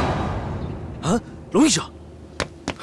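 A young man exclaims in surprise, close by.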